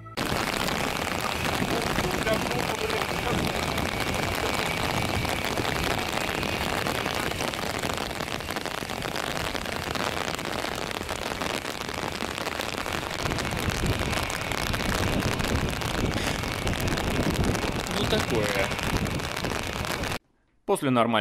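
Rain patters steadily on an umbrella outdoors.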